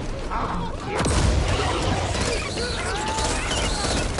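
A fire roars and crackles in a burst of flame.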